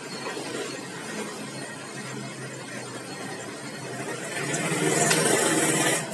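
A metal lathe runs with a low, steady whir.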